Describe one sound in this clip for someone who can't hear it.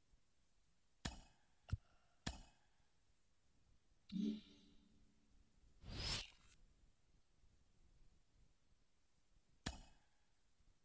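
Short menu clicks sound.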